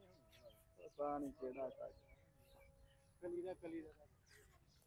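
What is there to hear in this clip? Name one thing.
A man talks quietly further off.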